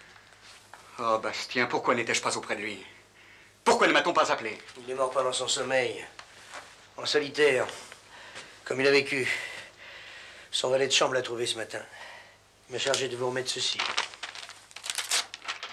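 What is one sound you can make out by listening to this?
An older man speaks calmly in a deep voice, close by.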